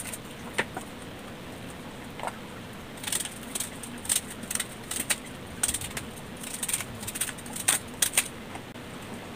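A knife clicks and scrapes as something is peeled by hand.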